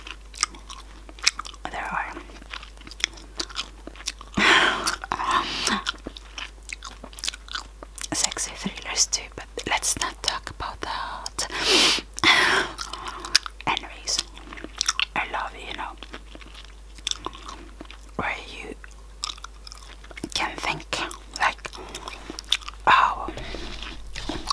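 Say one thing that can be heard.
Wet mouth sounds click and smack close to a microphone.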